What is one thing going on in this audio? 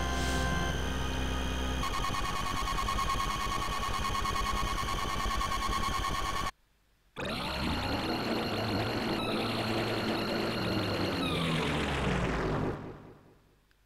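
Video game sound effects shimmer and whoosh loudly, stop briefly, then swell again and fade away.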